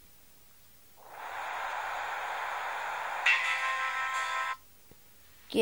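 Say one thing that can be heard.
Music plays from a small phone speaker.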